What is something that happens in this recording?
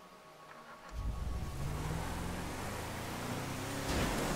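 A truck engine starts and revs.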